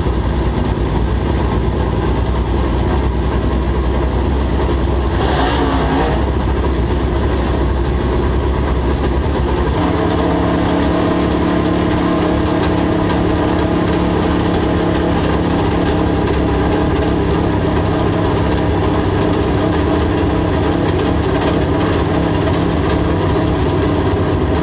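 Tyres rumble and spray over a dirt track.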